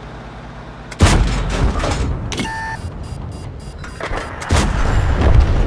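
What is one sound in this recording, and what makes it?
A tank cannon fires with a loud, sharp boom.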